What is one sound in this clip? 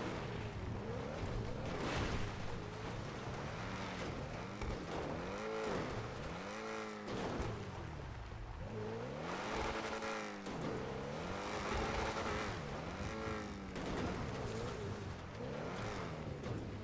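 A car engine revs up and down repeatedly.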